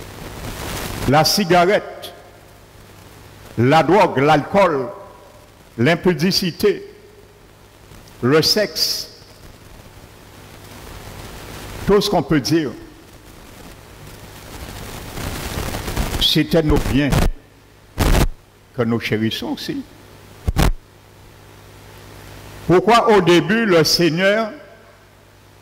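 A middle-aged man speaks through a headset microphone in short bursts, with pauses between phrases, in a room with some echo.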